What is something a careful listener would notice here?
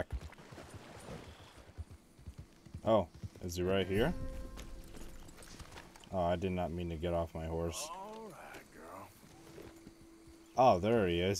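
A horse's hooves thud on grass.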